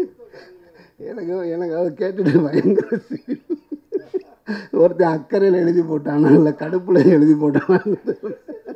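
A man laughs heartily into a microphone through loudspeakers.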